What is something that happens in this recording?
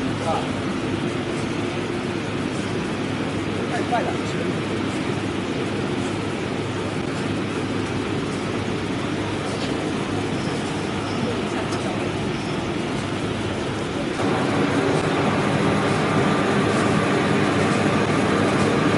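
Plastic film rushes over the rollers of a printing press.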